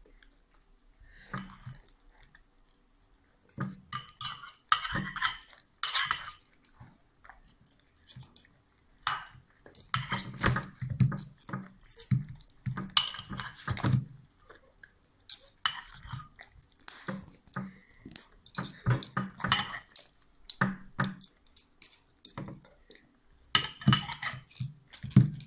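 A dog chews and smacks its lips noisily.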